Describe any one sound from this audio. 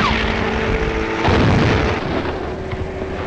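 An explosion bursts with a loud blast.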